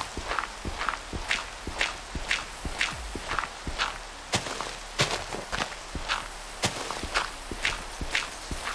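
Blocks of dirt crunch in a steady rhythm as they are dug away.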